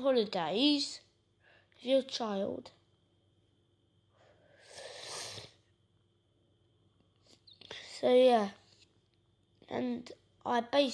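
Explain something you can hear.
A young boy talks close up in short bursts with pauses.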